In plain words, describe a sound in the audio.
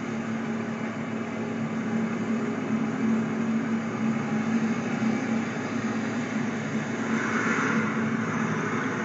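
Traffic rumbles steadily along a street.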